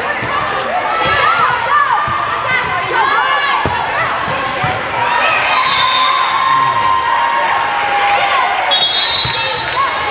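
A volleyball thumps off players' arms and hands.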